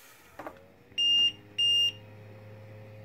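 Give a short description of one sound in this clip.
A machine beeps twice.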